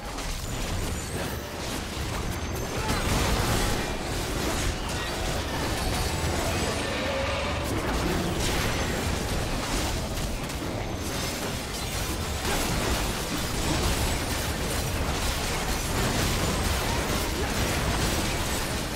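Video game spell blasts and sword clashes ring out continuously.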